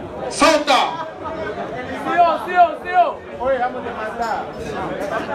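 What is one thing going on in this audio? A young man shouts with animation close by.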